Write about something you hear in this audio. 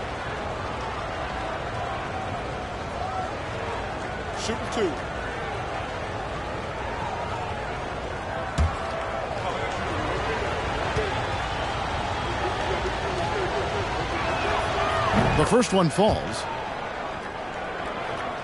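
A large crowd murmurs in an echoing arena.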